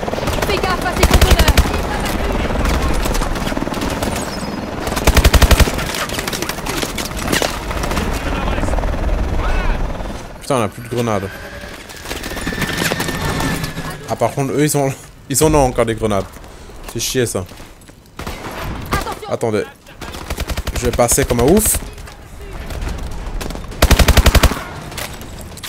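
A rifle fires rapid bursts at close range.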